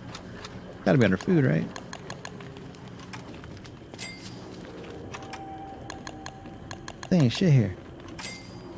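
Soft clicks sound as menu items are picked.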